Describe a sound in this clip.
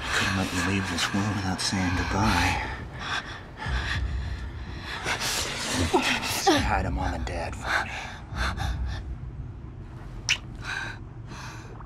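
A young woman breathes heavily and gasps.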